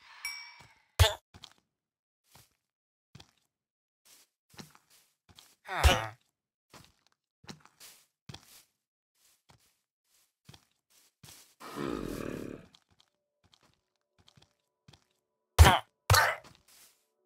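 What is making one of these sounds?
A sword strikes a creature with sharp thuds.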